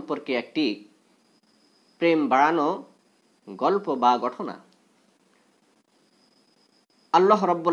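A young man chants in a melodic voice, close to a microphone, in short phrases with pauses.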